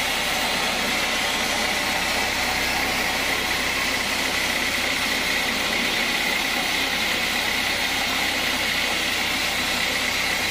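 A band saw cuts through a thick log with a steady, loud whine.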